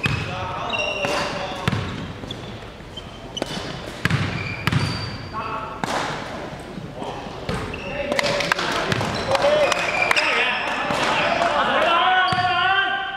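Young men call out to each other during the game.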